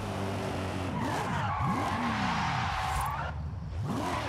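Tyres screech as a car skids and drifts.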